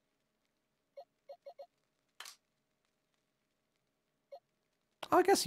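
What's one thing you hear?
Short soft electronic blips sound a few times.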